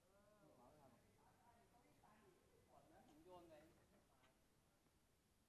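A man talks casually, heard from a little distance outdoors.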